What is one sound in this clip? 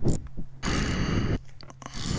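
A ratchet wrench clicks as a bolt is turned.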